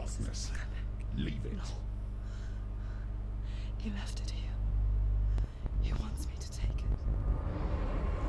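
A young woman speaks in a strained, pained voice close by.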